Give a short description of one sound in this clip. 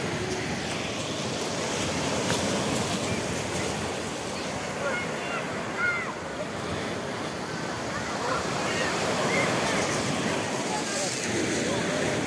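Small waves splash and wash over pebbles nearby.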